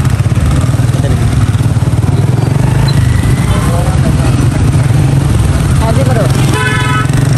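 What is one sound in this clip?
A motorbike engine rumbles steadily while riding.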